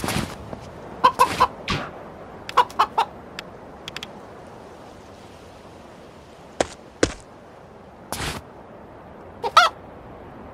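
A rooster crows sharply.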